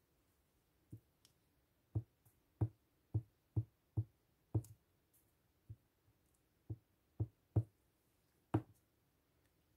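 Fingers tap lightly on a plastic sheet, again and again.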